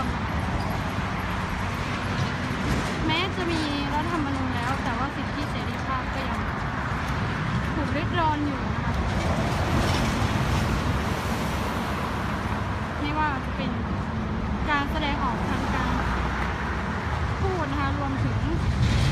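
Traffic roars steadily past on a busy road outdoors.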